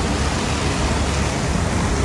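A car drives past with tyres hissing on the wet road.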